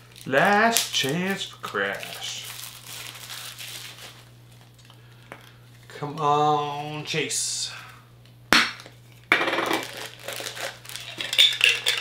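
Plastic packaging crinkles in a man's hands.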